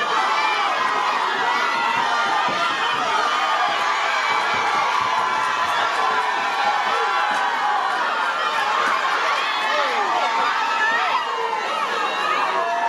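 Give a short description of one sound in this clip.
A crowd of young people cheers and screams loudly in a room.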